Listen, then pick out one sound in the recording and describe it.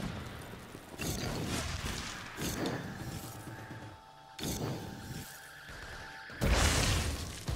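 Flames whoosh and crackle in short bursts.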